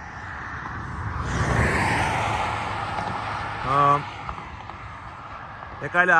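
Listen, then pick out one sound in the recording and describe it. Cars swish past on a nearby road.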